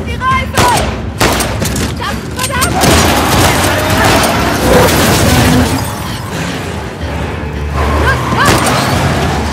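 A young woman shouts urgently.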